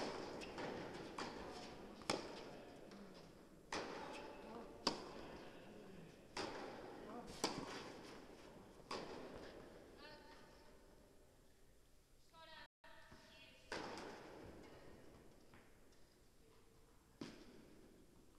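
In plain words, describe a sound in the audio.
Tennis balls are struck sharply with rackets, echoing in a large indoor hall.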